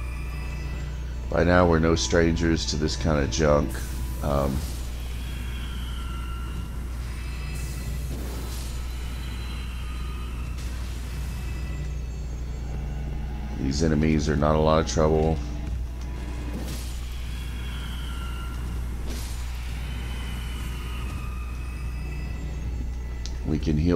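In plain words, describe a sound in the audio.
A sword swings and slashes with a magical whoosh.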